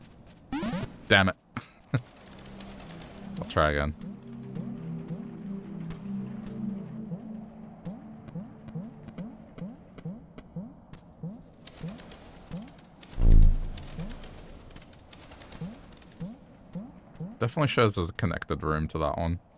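Soft, echoing video game music plays with plucked notes.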